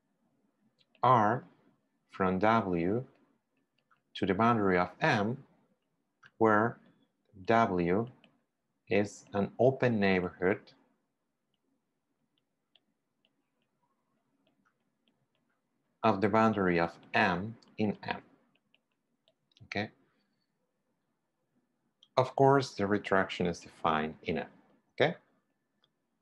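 A young man speaks calmly and clearly into a close microphone, in short phrases with pauses.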